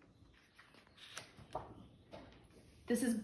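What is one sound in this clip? Stiff paper pages rustle as they are flipped.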